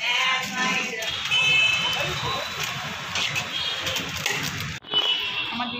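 A foil container rustles and crinkles in a hand.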